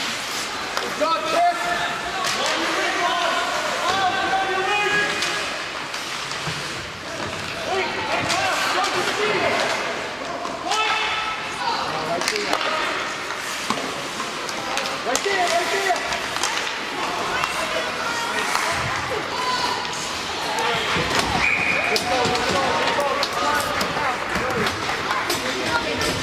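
Hockey skates scrape across ice.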